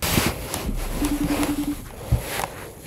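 A short electronic call tone beeps from a computer.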